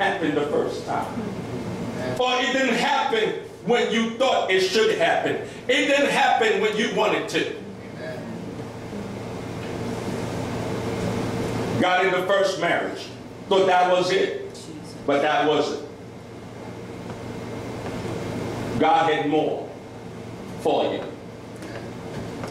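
A man preaches with animation through a microphone and loudspeakers in an echoing room, pausing between phrases.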